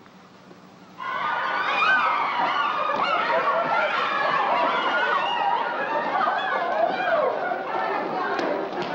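A crowd of women chatter and call out at once.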